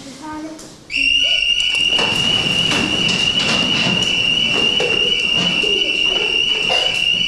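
Chairs and desks scrape and knock on the floor.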